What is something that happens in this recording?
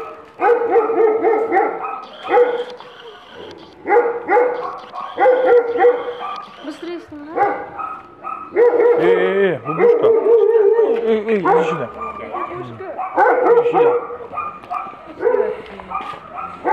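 A small dog barks and yelps repeatedly, close by.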